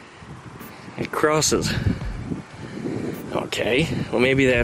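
A man speaks close by, calmly explaining.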